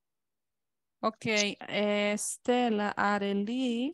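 A woman speaks clearly over an online call.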